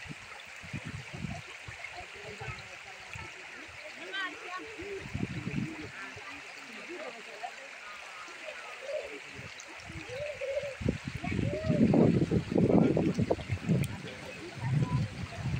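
A shallow river ripples and gurgles close by.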